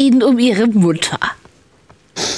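A woman speaks firmly and clearly, close by.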